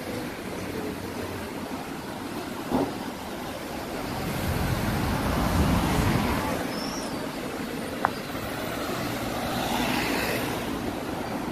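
Cars drive past on a street nearby.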